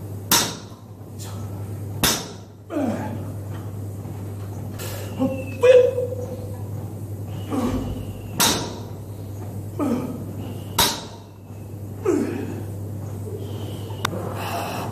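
A loaded barbell's iron plates knock on the floor during deadlifts.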